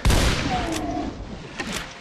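Shotgun shells click as a shotgun is reloaded.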